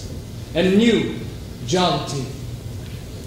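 A young man speaks softly, heard from a distance in a large room.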